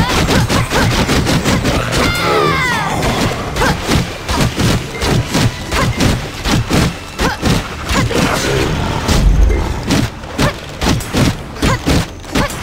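Weapon strikes and spell effects hit rapidly in a game fight.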